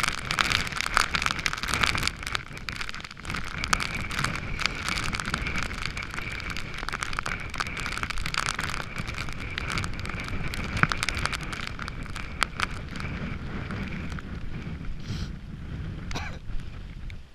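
A rain jacket rustles and flaps in the wind.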